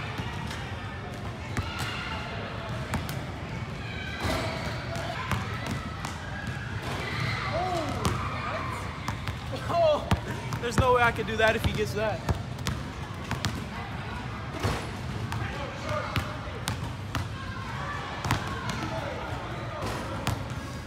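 Basketballs bounce on a wooden court in a large echoing hall.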